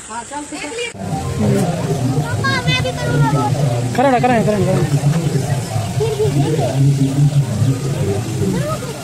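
A fountain sprays water with a steady rushing splash.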